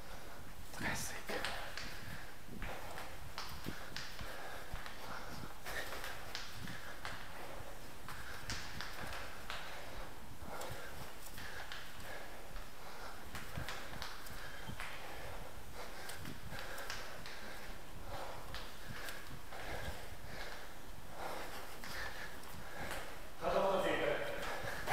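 Footsteps tap steadily on hard stairs, echoing in a stairwell.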